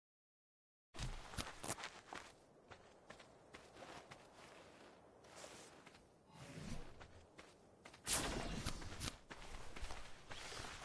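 Footsteps crunch through grass and over rock.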